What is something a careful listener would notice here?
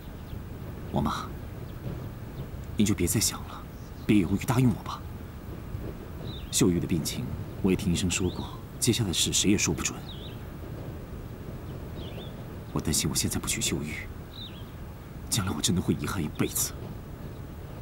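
A young man speaks in a worried voice, close by.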